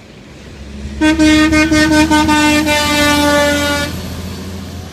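A truck's air horn blasts loudly in several short bursts and then holds a long note.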